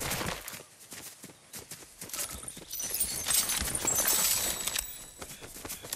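Short bright chimes ring as items are picked up.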